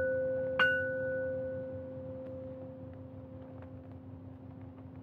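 A struck metal instrument rings out with a bright tone and slowly fades.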